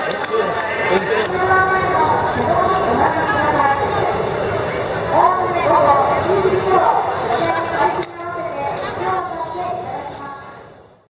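A large crowd of people chatters and calls out all around outdoors.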